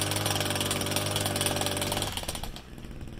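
A vehicle engine idles nearby.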